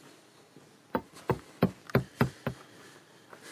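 Fingers knock on a wooden surface.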